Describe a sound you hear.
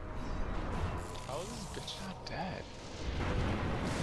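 Crackling electric bursts zap.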